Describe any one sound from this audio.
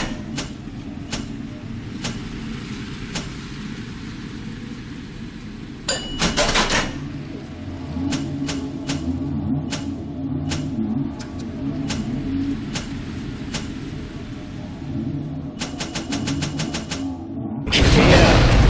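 Soft menu clicks tick as a selection moves through a list.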